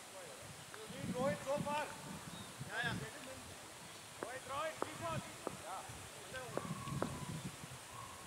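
Men call out across an open field outdoors.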